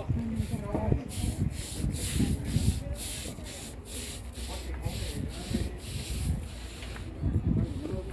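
A woman scrubs wet concrete with a stiff broom in rhythmic strokes.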